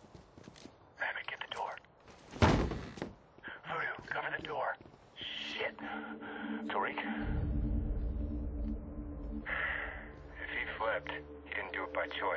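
A man speaks tensely up close.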